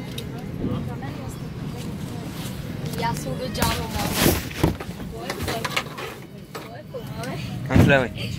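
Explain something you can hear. Men and women murmur and talk nearby.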